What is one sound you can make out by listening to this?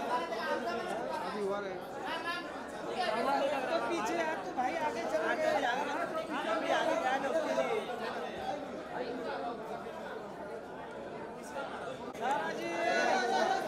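Many men and women chatter and talk over each other nearby.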